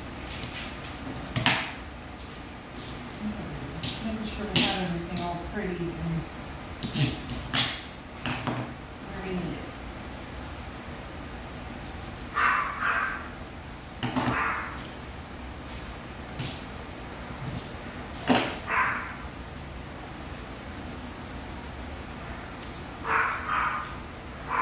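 Scissors snip through a dog's fur.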